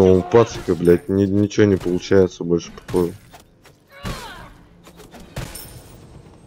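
Magic blasts whoosh and crash as game fighters clash.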